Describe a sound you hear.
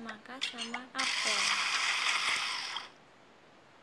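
A blender whirs loudly and steadily, then stops.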